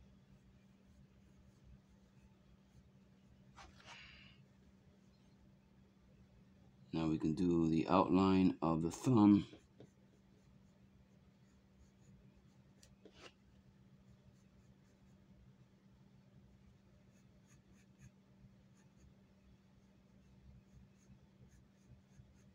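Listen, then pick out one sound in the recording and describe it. A pencil scratches lightly on paper.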